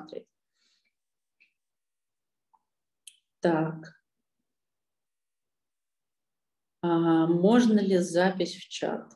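A young woman speaks calmly over an online call, pausing between phrases.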